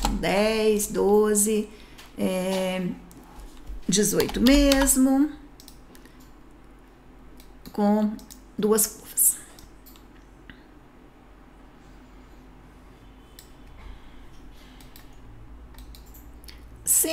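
A woman talks calmly and clearly into a close microphone, pausing now and then.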